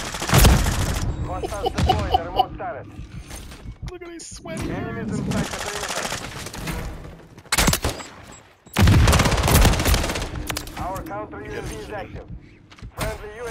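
Explosions boom close by.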